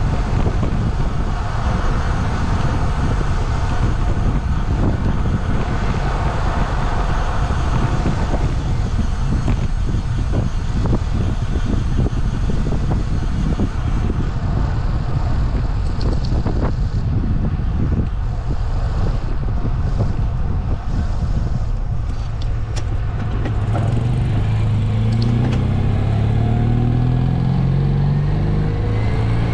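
Tyres roll steadily on asphalt.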